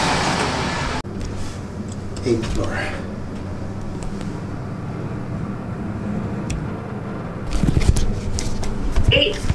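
An elevator hums steadily as it rises.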